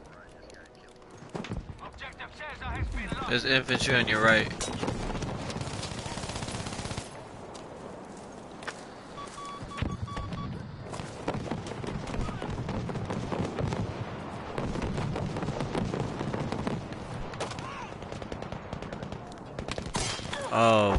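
Gunshots crack repeatedly in the distance.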